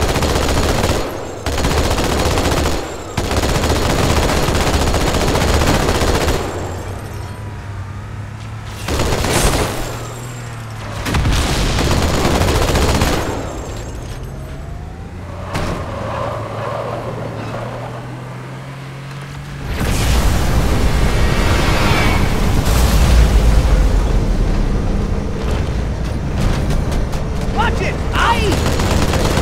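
A heavy machine gun fires in rapid, loud bursts.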